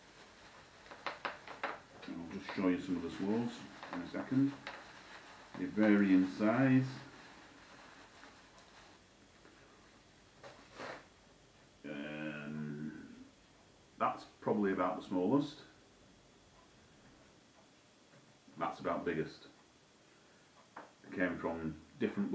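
A man speaks calmly and close by, in short bursts.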